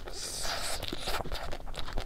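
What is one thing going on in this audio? A young woman sucks and slurps on an ice cream bar close to a microphone.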